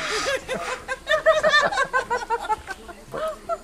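An elderly man laughs nearby.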